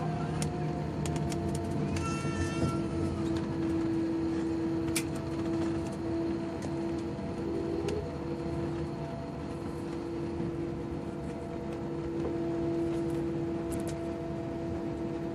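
The cabin rumbles and rattles as the airliner rolls over the ground.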